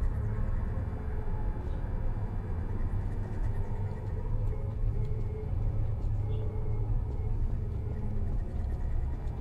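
A portal hums with a low, steady drone.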